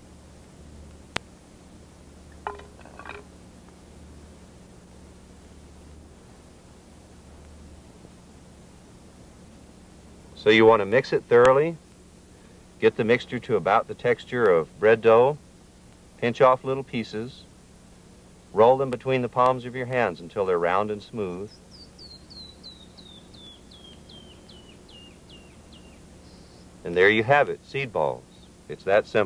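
Wet clay squelches softly as hands knead it in a bowl.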